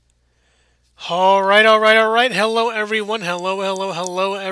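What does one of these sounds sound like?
A young man sings loudly and close to a microphone.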